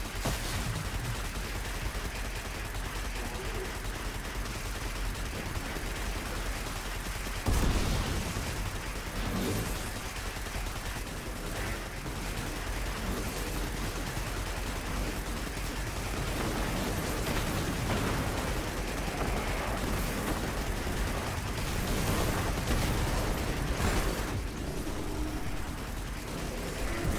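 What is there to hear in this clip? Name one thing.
A hovering vehicle's engine hums steadily.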